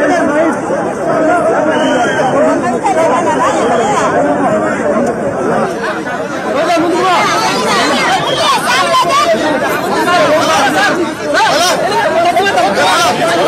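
A large crowd of men shouts and cheers loudly all around, close by.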